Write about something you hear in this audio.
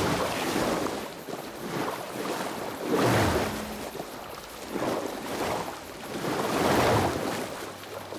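Water sloshes and swishes with steady swimming strokes.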